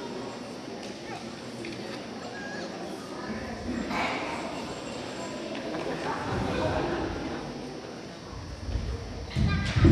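A boy speaks into a microphone over loudspeakers in an echoing hall.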